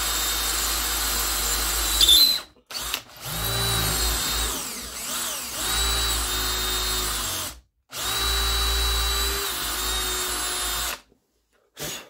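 A cordless drill whirs in bursts, drilling into a metal sight.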